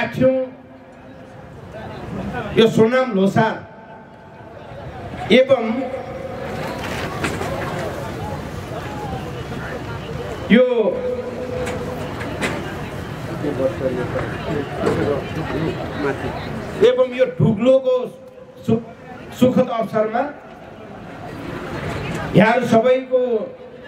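A middle-aged man speaks with animation into a microphone over loudspeakers outdoors.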